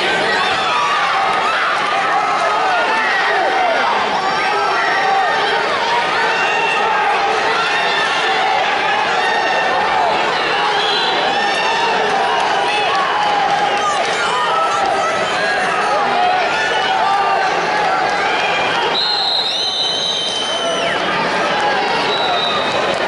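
A large crowd chatters and calls out in an echoing arena.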